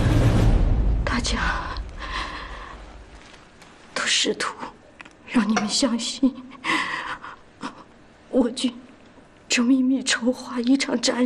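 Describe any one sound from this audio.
A middle-aged woman speaks weakly and hoarsely, close by.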